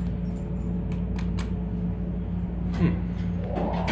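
An elevator button clicks as it is pressed.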